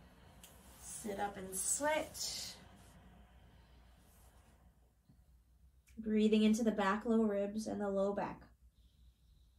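A woman speaks calmly and slowly nearby, giving instructions.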